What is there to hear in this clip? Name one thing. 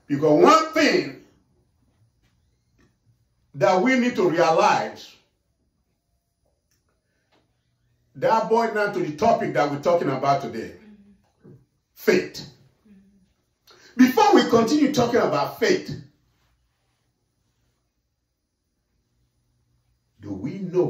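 A middle-aged man speaks with animation into a microphone, with long pauses between phrases.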